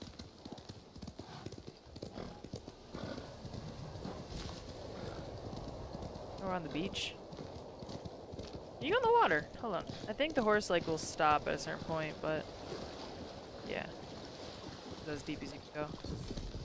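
A horse gallops with rapid hoofbeats.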